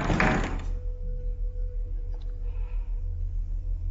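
A wooden cabinet door creaks open.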